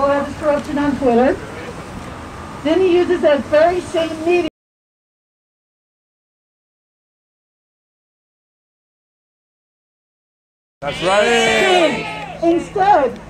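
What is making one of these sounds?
A woman speaks loudly into a microphone outdoors.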